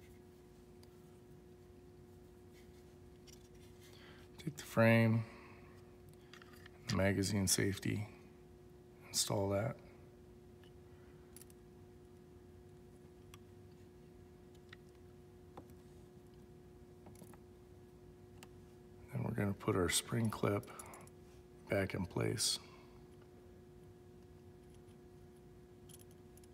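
Small metal parts click and tap as hands handle them.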